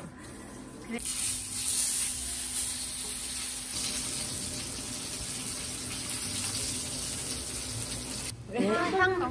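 Steak sizzles loudly in a hot pan.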